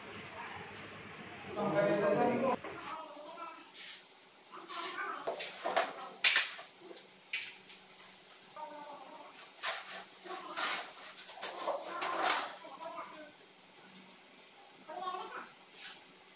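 Wooden stool legs knock and scrape on a hard floor.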